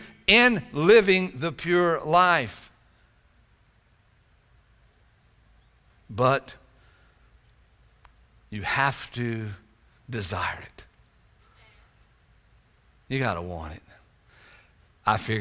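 An older man speaks with expression into a microphone, with pauses between phrases.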